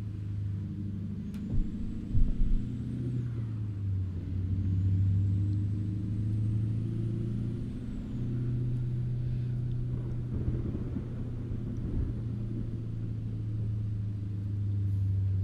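A heavy truck engine rumbles steadily while driving.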